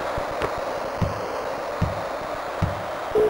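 A basketball bounces with dull thumps on a court.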